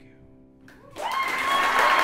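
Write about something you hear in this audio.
A piano plays softly.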